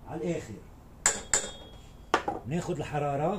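A metal spoon clinks and scrapes against a pot.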